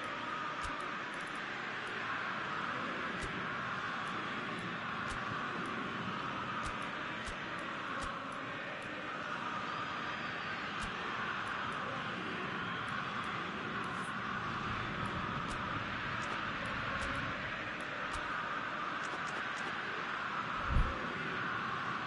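Short menu clicks tick again and again as selections change.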